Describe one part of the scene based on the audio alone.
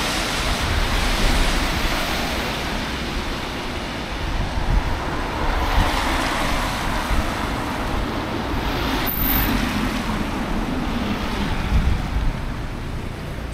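Car tyres hiss past on a wet road.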